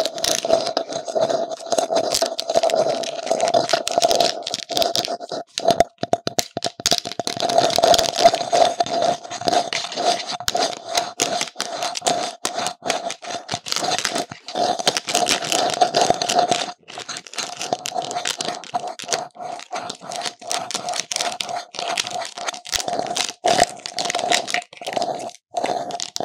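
Fingernails tap and scratch on a hollow plastic pumpkin close by.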